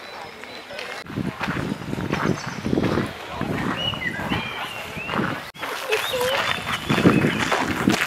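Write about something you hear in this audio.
A crowd of adults chatters a short distance away.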